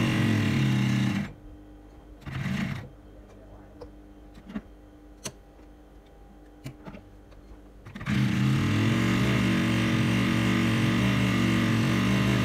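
A sewing machine runs with a fast, steady whirring hum.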